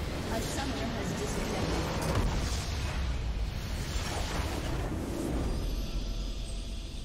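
A huge structure explodes with a deep rumbling roar.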